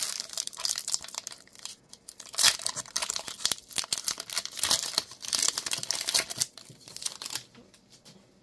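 A foil wrapper crinkles and tears as it is torn open.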